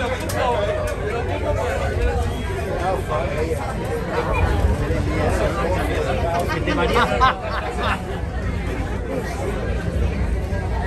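Passengers chatter in many overlapping voices nearby.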